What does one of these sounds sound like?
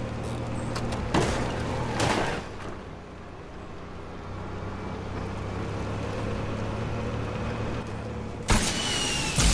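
A small vehicle engine hums steadily.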